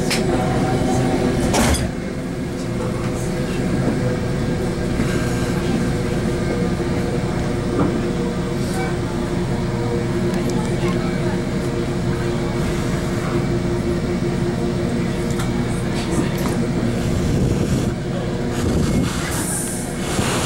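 A train rumbles and hums steadily as it rolls along the tracks.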